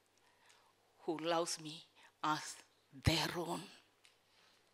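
A middle-aged woman speaks calmly into a microphone over a loudspeaker.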